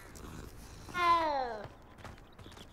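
A cat meows loudly with a falling cry.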